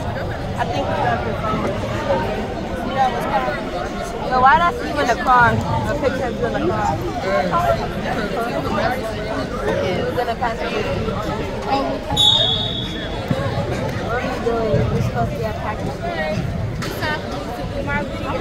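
A crowd of spectators talks and shouts in a large echoing gym.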